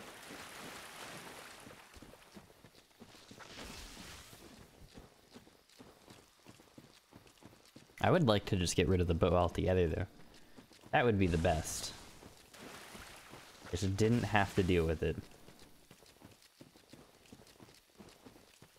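Footsteps crunch over soft ground at a steady pace.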